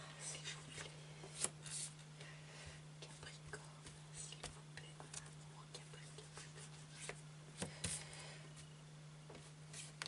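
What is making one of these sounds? Cards are laid down on a cloth-covered table with light taps.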